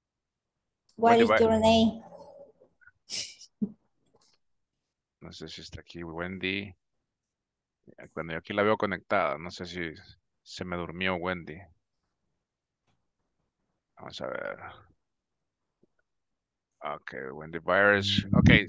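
A woman speaks calmly through an online call, in bursts with pauses.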